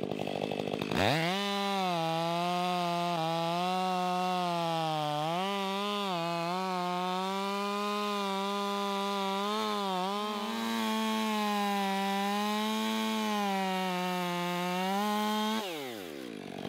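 A chainsaw revs loudly and strains as it cuts into wood.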